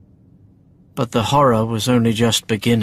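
A young man speaks close by in a calm, expressive voice.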